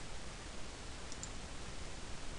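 A mouse button clicks once.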